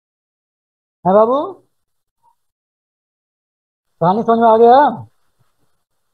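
A man speaks in short phrases over an online call.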